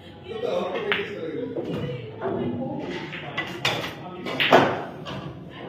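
Pool balls clack together and roll across the table.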